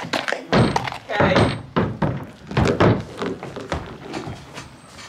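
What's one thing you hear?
Hooves clatter and thud on a wooden ramp.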